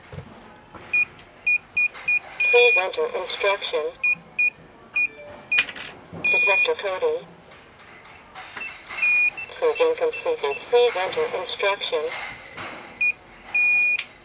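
An alarm control panel's keypad gives short electronic beeps as keys are pressed.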